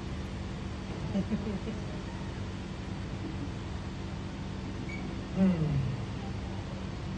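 A young man speaks on a stage in a large hall, with short bursts of speech.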